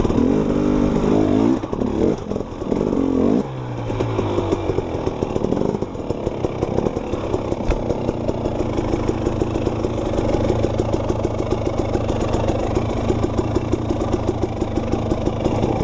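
A dirt bike engine revs hard and sputters close by.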